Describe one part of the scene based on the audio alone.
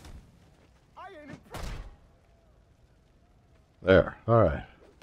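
A man grunts and cries out in pain.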